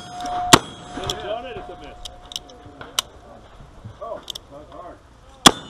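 A revolver fires shots outdoors.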